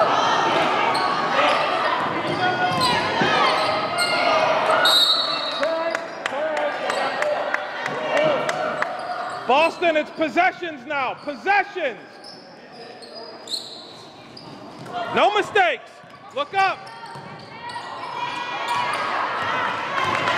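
Spectators chatter and call out in an echoing gym.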